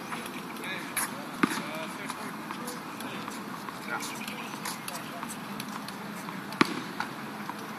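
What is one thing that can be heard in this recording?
A tennis ball is hit with a racket some distance away.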